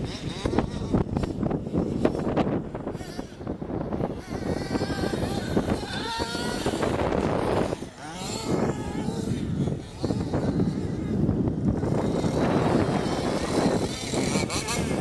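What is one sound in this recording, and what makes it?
A small electric motor of a remote-control car whines as it races over grass.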